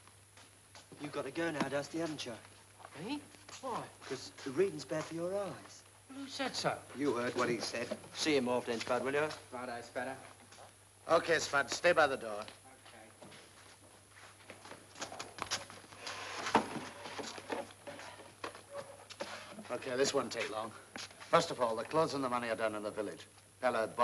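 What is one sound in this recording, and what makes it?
A young man speaks firmly and with animation, close by.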